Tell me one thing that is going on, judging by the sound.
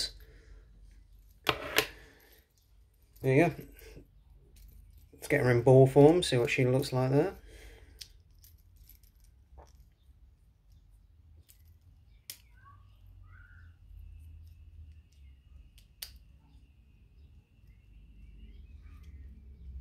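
Plastic toy parts click and snap as they are handled.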